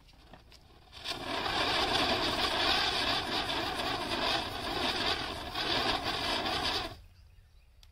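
A small firework fizzes and hisses loudly as it sprays sparks.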